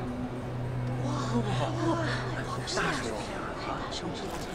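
A young woman speaks with excitement into microphones.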